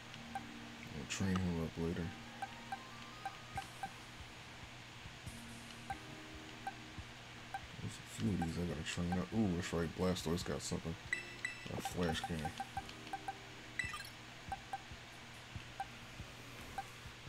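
Short soft menu beeps sound again and again.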